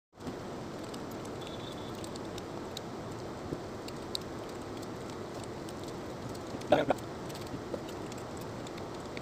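Metal cutlery clinks against a plate.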